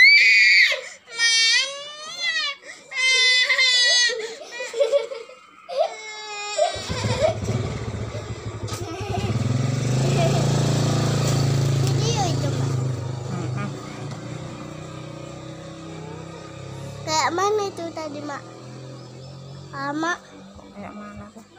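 Young girls chatter and squeal in high voices close by.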